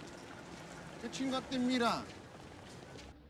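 A young woman asks a short question nearby.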